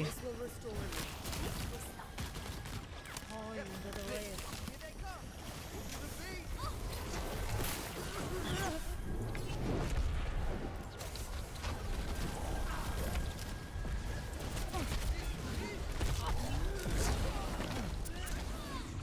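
Game weapons fire and blast in a busy battle.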